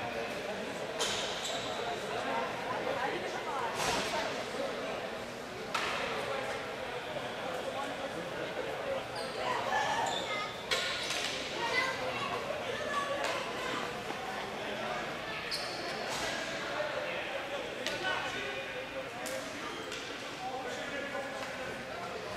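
Players' sticks clack against each other and the ball.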